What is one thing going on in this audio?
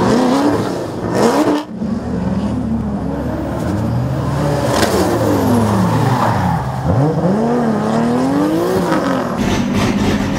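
Tyres screech on asphalt as a car drifts.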